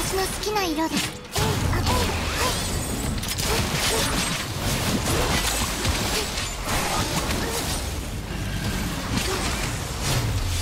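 Sword slashes and magic blasts strike again and again in quick bursts.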